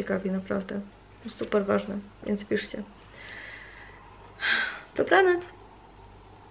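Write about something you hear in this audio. A young woman talks close by, with animation.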